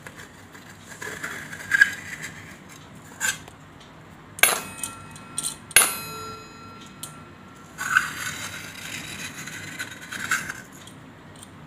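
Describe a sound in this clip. A spoon stirs liquid in a bowl.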